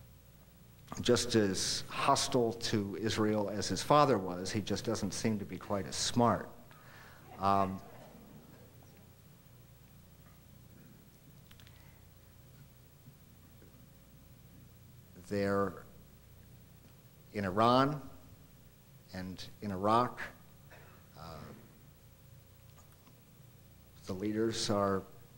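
A middle-aged man speaks calmly into a microphone, pausing between phrases.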